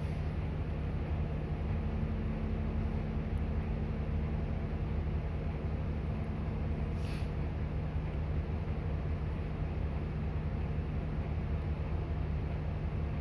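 A diesel city bus engine idles, heard from inside the bus.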